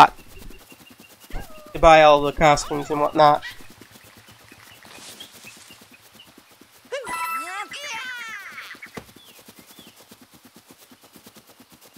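A cartoon character's quick footsteps patter on grass.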